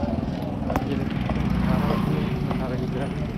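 A motorcycle engine rumbles as it rides past close by.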